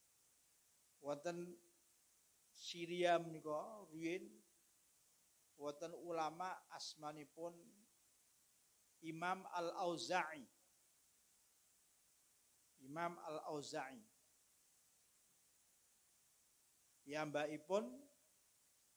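A man speaks calmly through a microphone in short phrases with pauses.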